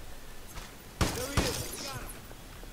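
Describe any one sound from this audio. Glass shatters.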